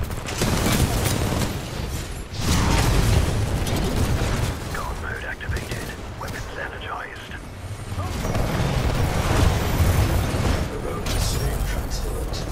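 Gunfire rattles rapidly and loudly.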